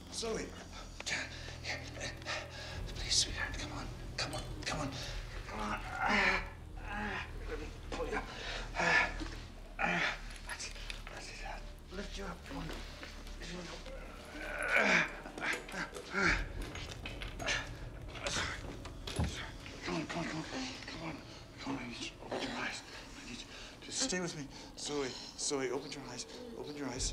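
An elderly man speaks urgently and with distress, close by.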